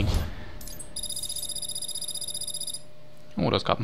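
Rapid electronic beeps tick in a fast, even run.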